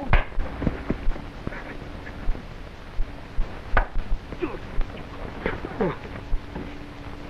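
Bodies thud and scuffle on grass as two men wrestle.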